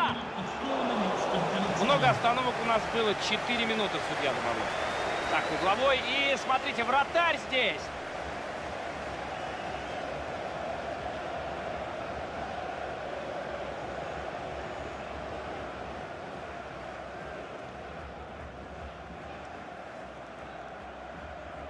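A large stadium crowd roars and chants steadily, then quiets a little.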